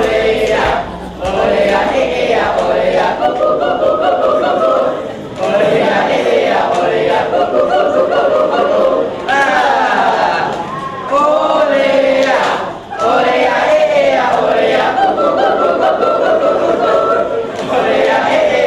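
A group of young people sings along together.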